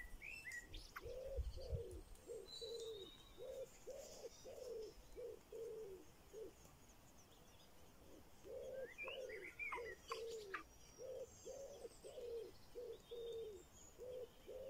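Baby birds cheep rapidly and insistently close by.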